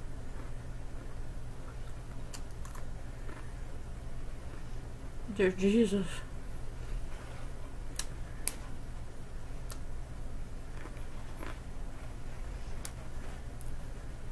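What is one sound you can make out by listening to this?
A woman chews raw broccoli.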